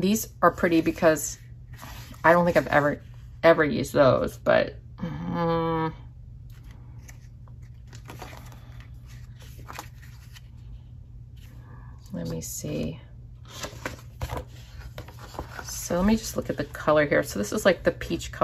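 Paper sheets rustle and slide against each other.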